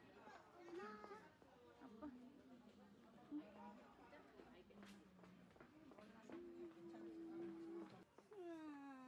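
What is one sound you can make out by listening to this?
Adults murmur and chatter in the background.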